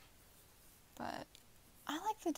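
A paper page turns with a soft rustle.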